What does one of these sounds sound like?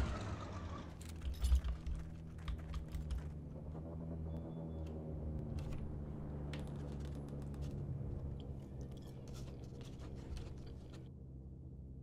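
A wrench clanks against metal.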